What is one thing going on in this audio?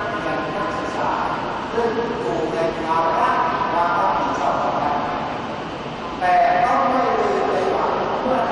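A man chants through a loudspeaker in a large echoing hall.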